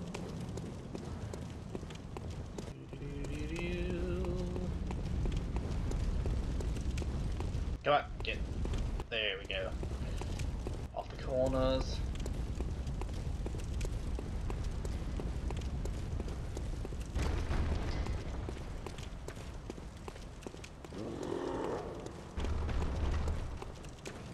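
Footsteps run over wet cobblestones.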